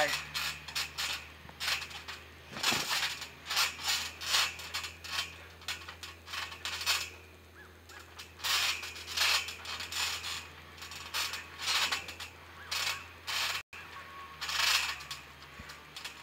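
A trampoline mat thumps and creaks as a person lands and moves on it.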